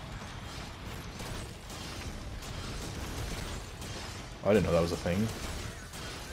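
Blades slash and clang in rapid succession.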